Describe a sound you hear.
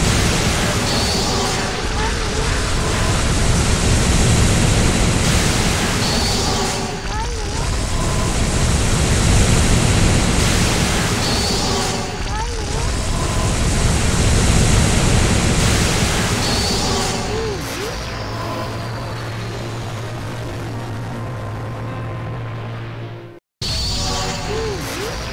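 Dense electronic game music and bursting effects play loudly throughout.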